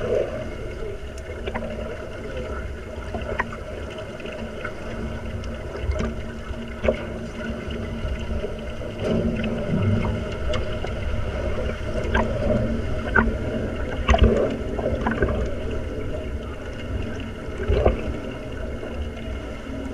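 Water churns as swimmers kick and splash above, heard muffled underwater.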